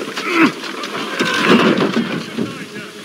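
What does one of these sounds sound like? A wooden cart crashes over onto its side with a heavy clatter.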